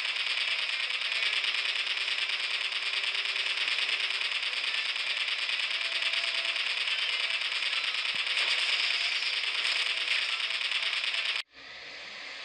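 A car engine roars at high speed.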